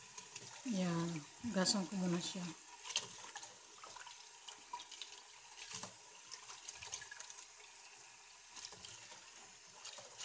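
Hands swish lentils around in water.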